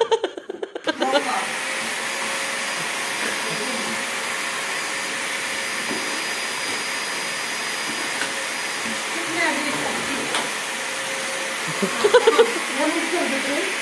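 A vacuum cleaner hums steadily.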